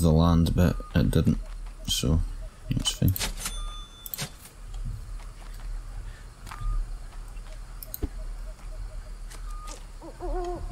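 Footsteps crunch slowly over forest ground and wooden boards.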